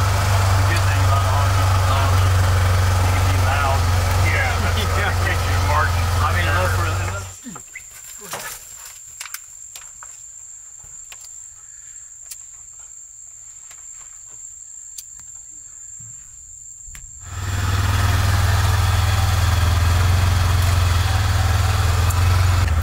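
A vehicle engine hums steadily at low pitch.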